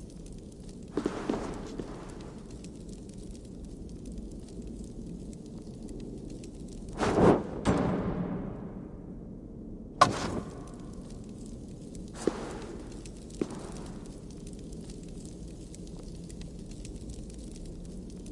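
A torch flame flickers and crackles.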